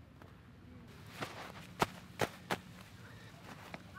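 Gloves rustle and thump onto snow.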